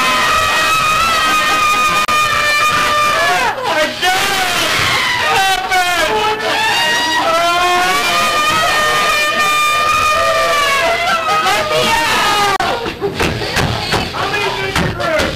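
An older woman laughs loudly close by.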